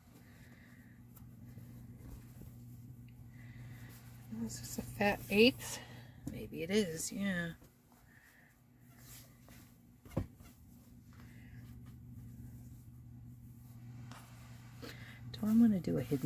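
Paper rustles and crinkles as hands unfold and smooth it out.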